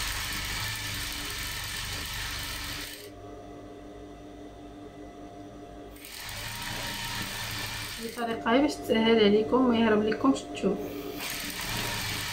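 A sewing machine whirs steadily in short runs.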